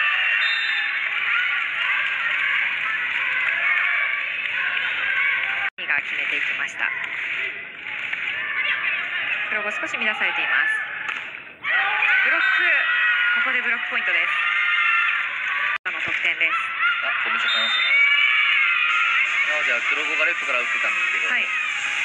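A volleyball is struck hard.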